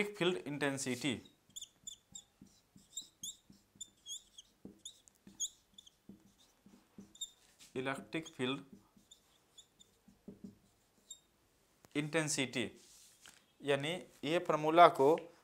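A young man speaks calmly in short bursts, close to a microphone.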